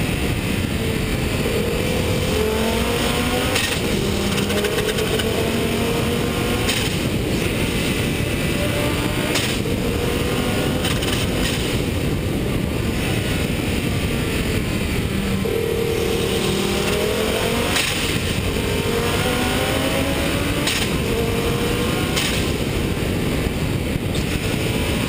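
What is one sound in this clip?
A motorcycle engine hums and rises in pitch as it speeds up and shifts gears.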